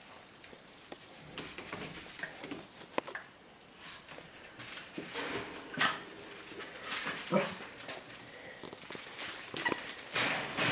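Puppies scamper and scratch across a hard tiled floor.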